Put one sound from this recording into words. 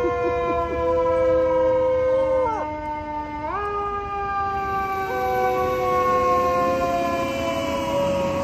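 A fire engine's siren blares loudly nearby, dropping and rising in pitch.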